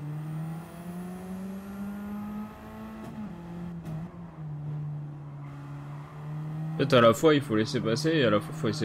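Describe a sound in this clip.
A racing car engine hums and revs, rising and falling in pitch.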